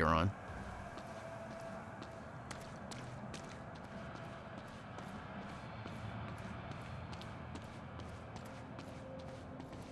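Footsteps tap on a hard floor as a man runs.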